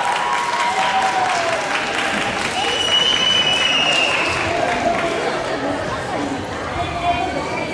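A group of young girls sings together through microphones in a large hall.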